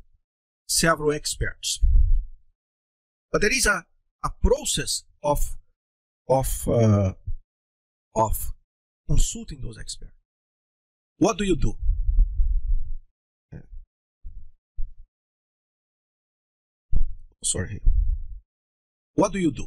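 A middle-aged man talks calmly, close by, in short phrases with pauses.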